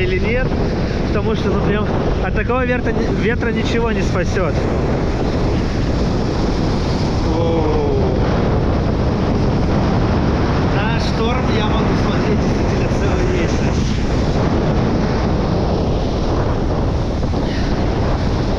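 Rough waves crash and churn against rocks, close by.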